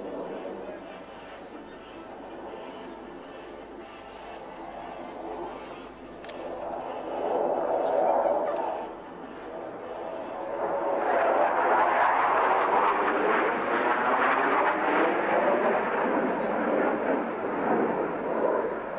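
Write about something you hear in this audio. A formation of jet fighters roars overhead.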